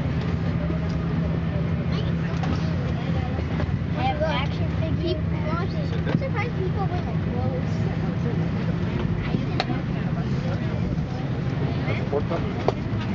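A low steady hum of aircraft air systems fills an enclosed cabin.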